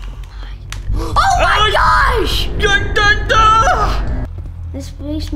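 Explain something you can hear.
A young boy shrieks and shouts excitedly close by.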